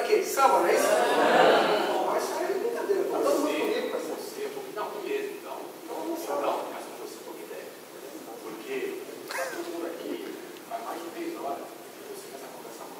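Men talk with animation in a large echoing hall.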